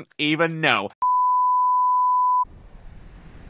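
A steady high beep tone sounds.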